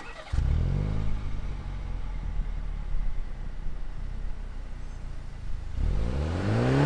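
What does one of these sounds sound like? A sports car engine idles with a deep rumble.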